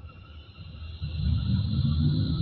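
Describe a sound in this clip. A tram rumbles louder and louder over the rails.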